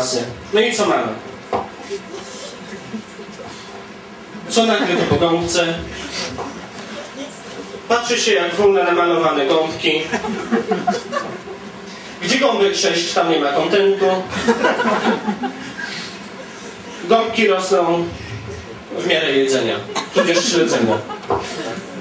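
A young man speaks into a microphone with animation, heard through loudspeakers in an echoing room.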